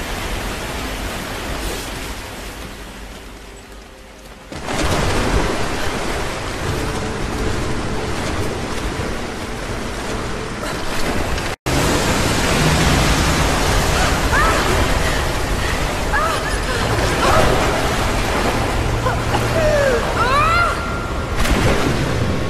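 A young woman speaks anxiously to herself, close by.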